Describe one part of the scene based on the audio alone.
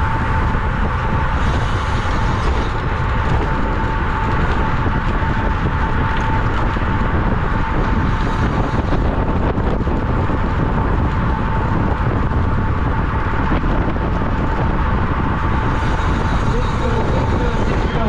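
Strong wind rushes past, loud and steady.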